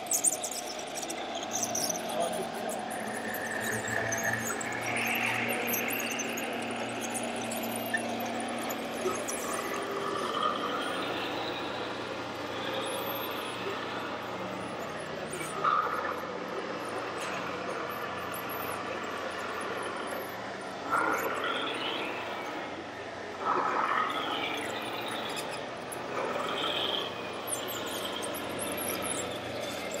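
A small electric motor whirs as a model dump truck drives.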